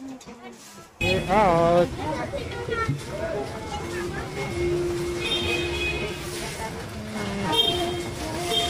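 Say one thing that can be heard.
People chatter and bustle on a busy street outdoors.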